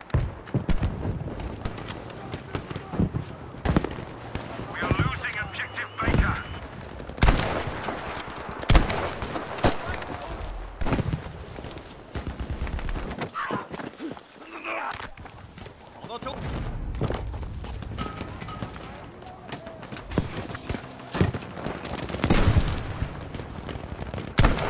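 Rifle shots crack and boom, with echoes rolling away.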